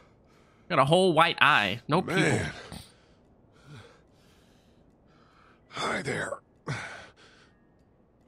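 A young man exclaims loudly and with animation close to a microphone.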